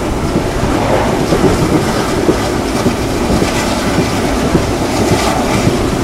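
Wind rushes past loudly, as if heard from an open train window.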